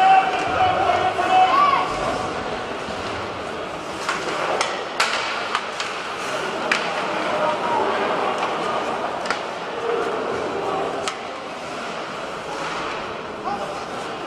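Skates scrape and hiss on ice.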